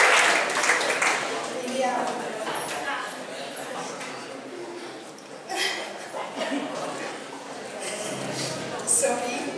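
A young woman speaks cheerfully through a microphone.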